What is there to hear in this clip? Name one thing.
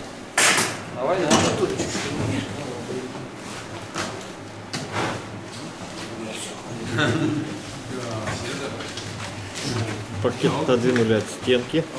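Adult men talk casually nearby.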